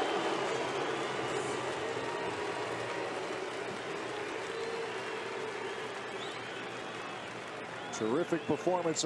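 A large crowd cheers and applauds in a stadium.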